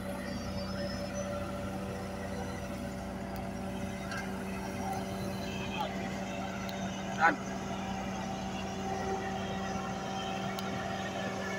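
A road roller's diesel engine rumbles steadily nearby.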